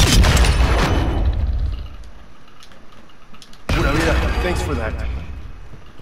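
Gunshots boom loudly in quick succession.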